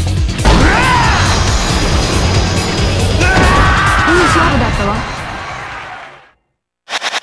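Fighters grunt and punches thud.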